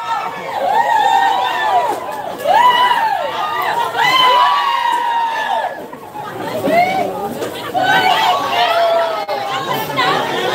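A crowd of women shout and squeal excitedly close by.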